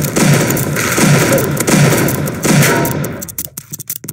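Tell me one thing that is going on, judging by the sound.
Shotgun blasts boom in quick succession.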